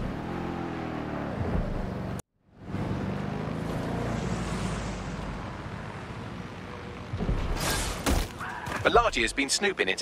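A sports car engine roars as the car accelerates.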